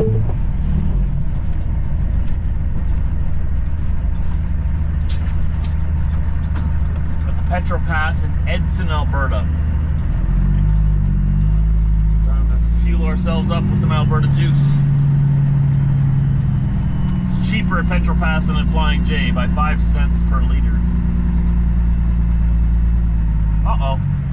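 A vehicle engine rumbles steadily while driving slowly.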